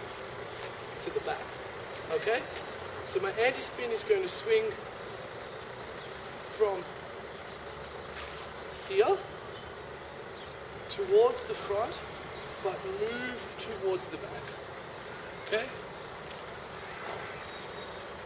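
A young man speaks in short bursts nearby.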